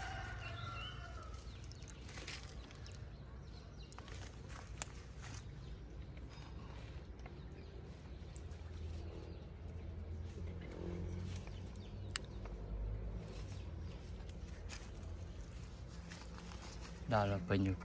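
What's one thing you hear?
A small monkey rustles and snaps leafy branches close by.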